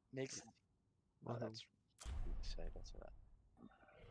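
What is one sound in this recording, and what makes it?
A menu button clicks with a short chime.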